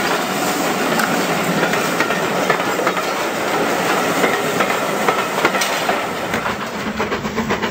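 A model train rumbles along the track with rhythmic clicking over rail joints.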